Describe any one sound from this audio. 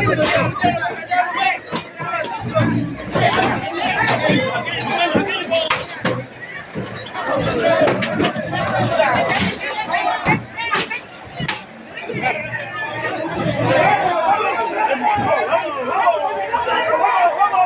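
A crowd of men and women shout and argue loudly, close by.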